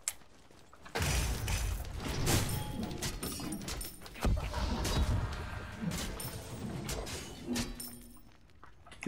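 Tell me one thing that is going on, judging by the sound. Sword strikes clang and thud in a fight.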